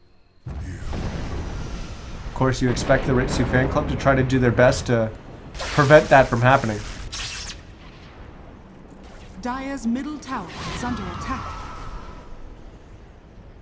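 Magic spells crackle and whoosh during a fantasy game battle.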